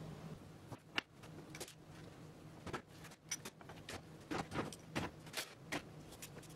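Clamps clatter as they are handled on a workbench.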